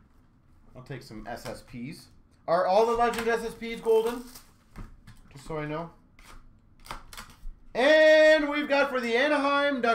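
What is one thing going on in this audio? Plastic card cases clack and rustle as a hand sorts through them.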